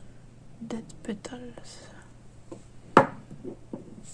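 A small glass bottle is set down on a hard surface with a light clink.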